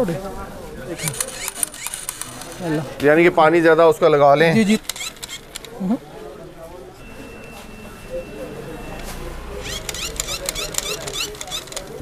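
A toy gun fires rapid electronic zapping sounds.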